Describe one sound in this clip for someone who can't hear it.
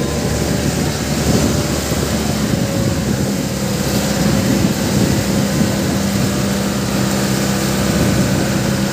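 Wind blows across the microphone outdoors.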